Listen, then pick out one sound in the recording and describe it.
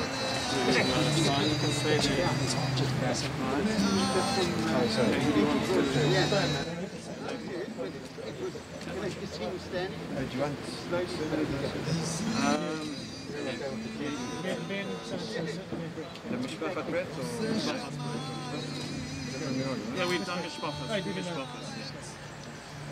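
Several men talk close by, their voices overlapping.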